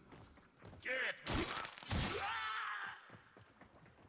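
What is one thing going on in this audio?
A heavy blade swings and strikes with loud whooshing slashes.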